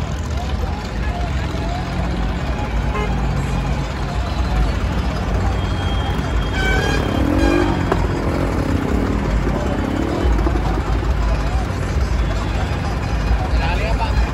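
Tractor engines rumble steadily.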